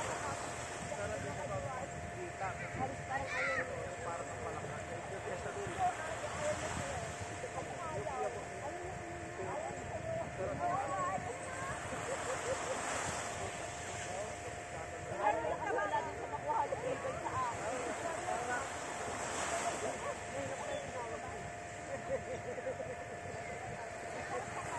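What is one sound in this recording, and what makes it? Distant people chatter and call out in the water, outdoors.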